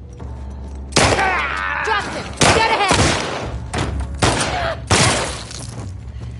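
Gunshots ring out loudly, several times in quick bursts.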